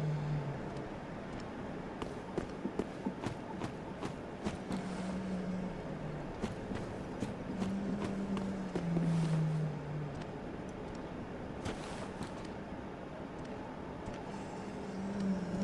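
Footsteps crunch on gravel and stones.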